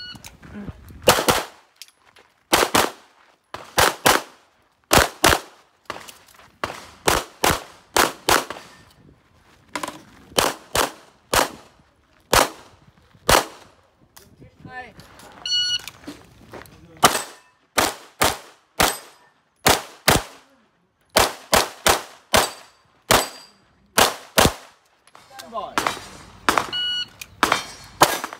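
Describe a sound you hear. Pistol shots crack outdoors in quick pairs.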